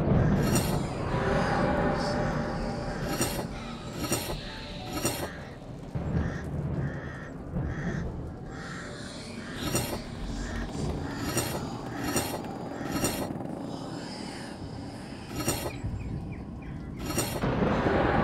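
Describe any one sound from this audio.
Metal discs click and clunk as they turn into place.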